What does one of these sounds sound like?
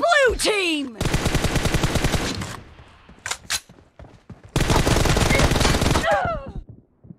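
Automatic rifle fire rattles in rapid bursts.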